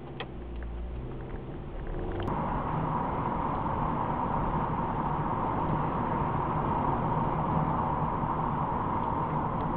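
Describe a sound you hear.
Tyres roar steadily on the road.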